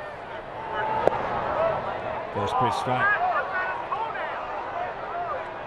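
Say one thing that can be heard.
A stadium crowd cheers loudly and then settles.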